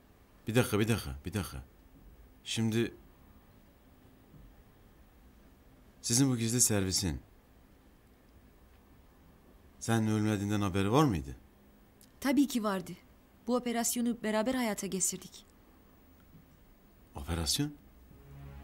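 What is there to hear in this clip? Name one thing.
A middle-aged man speaks tensely and sternly nearby.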